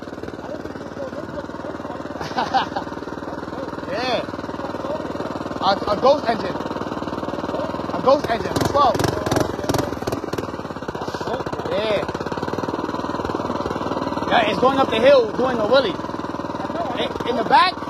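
An electric motorbike hums steadily at idle.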